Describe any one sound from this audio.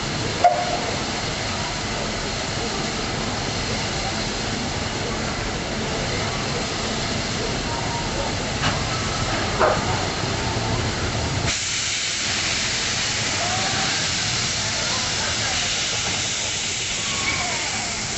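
A steam locomotive idles with a low, steady rumble.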